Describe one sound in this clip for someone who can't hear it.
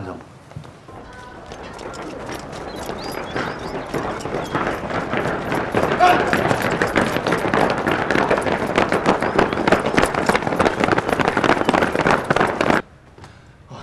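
Many soldiers' boots march on hard ground, growing louder.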